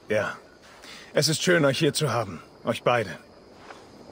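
A man answers in a deep, calm voice.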